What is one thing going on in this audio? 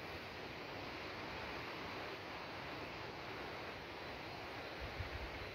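Wind blows steadily through leafy trees outdoors.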